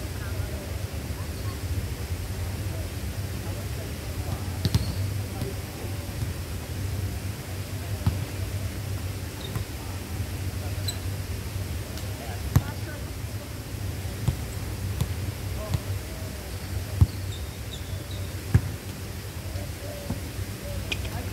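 Young people call out to each other now and then.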